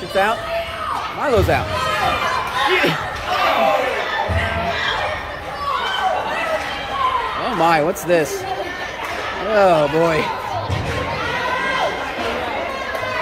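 Spectators shout and cheer with excitement close by.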